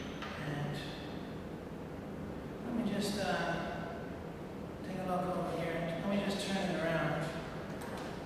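A man speaks calmly, close to a microphone.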